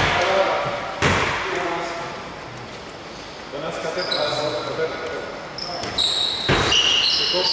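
A basketball thuds on the floor.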